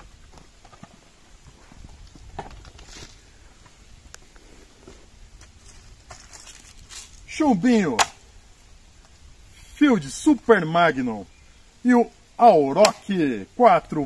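A rifle's parts click as a man handles it.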